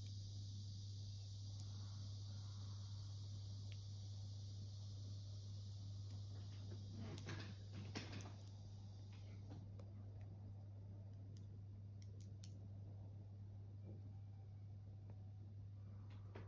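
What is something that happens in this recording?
Plastic toy bricks click together.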